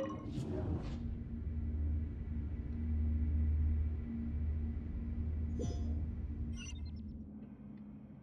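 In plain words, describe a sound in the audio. A deep whooshing rumble swells and fades.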